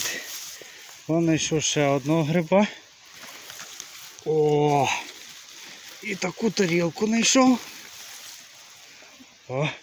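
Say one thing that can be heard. Dry grass and leaves rustle as a hand pushes through them.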